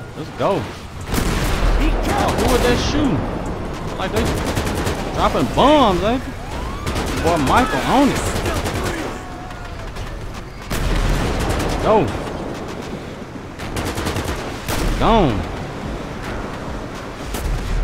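Tyres crunch on gravel.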